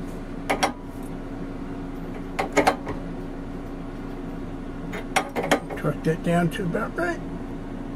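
A wrench clinks against a metal fitting.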